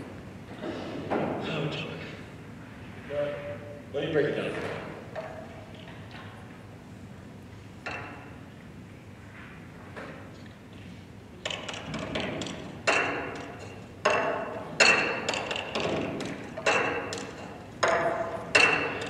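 A young man speaks in an echoing hall.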